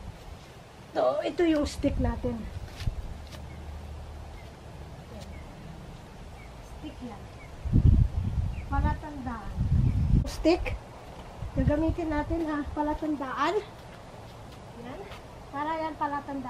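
A woman talks calmly close by, outdoors.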